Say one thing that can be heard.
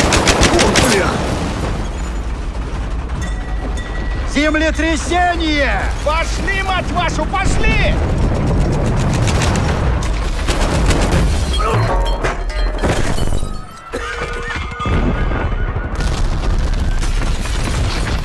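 Explosions boom nearby with deep rumbling.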